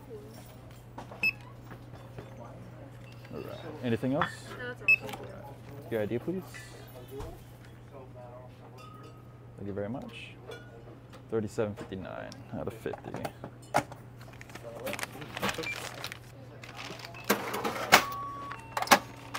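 A barcode scanner beeps.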